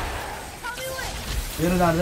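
Lightning crackles in a video game.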